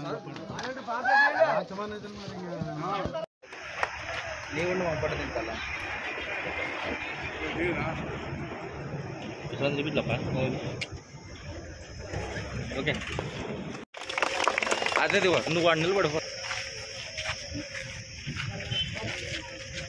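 A crowd of men talks and chatters nearby, outdoors.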